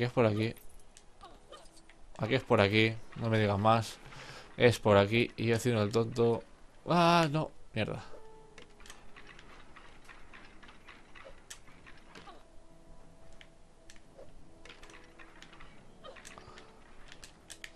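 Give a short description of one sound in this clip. Plastic bricks clatter and click as a toy skeleton moves.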